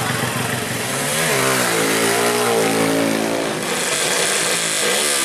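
A small motorcycle engine revs loudly and repeatedly.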